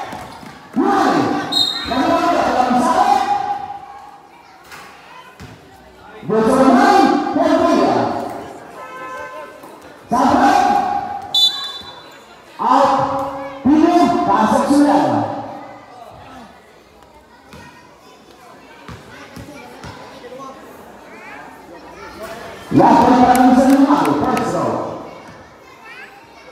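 A crowd of spectators shouts and cheers loudly in bursts.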